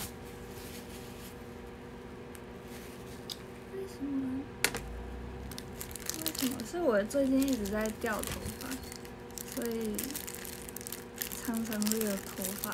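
Paper rustles and crinkles in a girl's hands.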